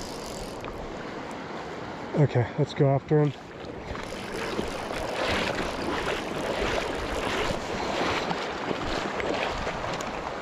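A shallow river flows and ripples steadily outdoors.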